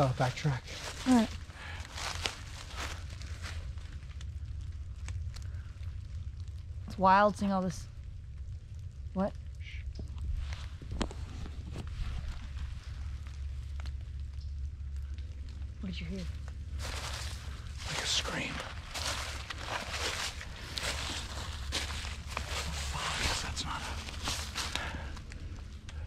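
Footsteps crunch through dry leaves close by.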